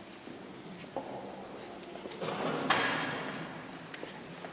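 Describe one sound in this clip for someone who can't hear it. A man reads aloud in a large echoing hall.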